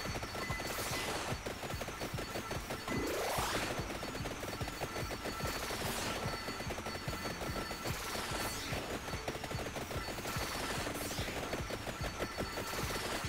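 Whooshing sweeps rise and fall every couple of seconds.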